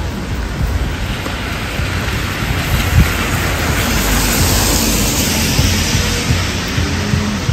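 A van drives past with tyres hissing on the wet road.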